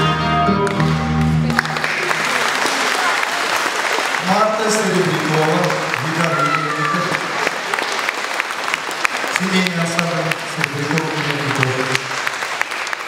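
A band plays guitars along with the singing.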